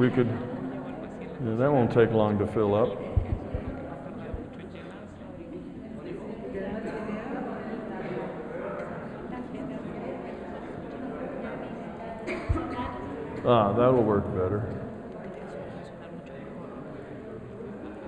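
An elderly man speaks calmly in a large room.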